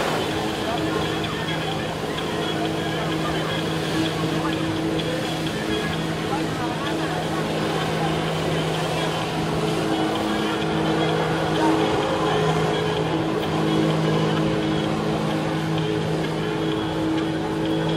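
Flyboard water jets roar and spray onto the sea.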